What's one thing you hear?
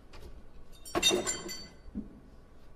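A glass bottle clinks against a glass.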